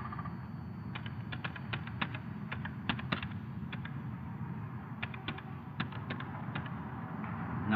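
Keys clatter on a computer keyboard in quick bursts.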